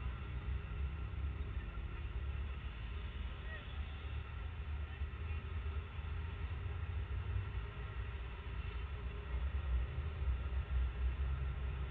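Motorbike engines putter by nearby.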